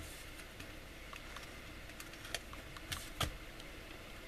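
A plastic card scrapes across a metal plate.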